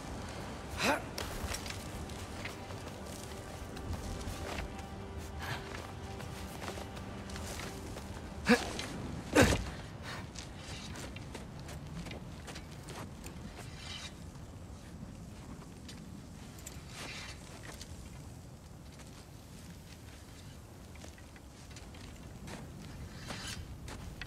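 Wind blows steadily over snow.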